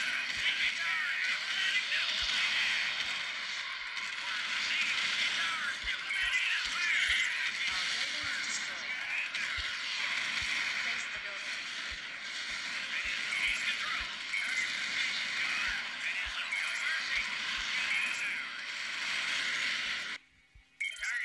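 Gunfire rattles in a video game battle.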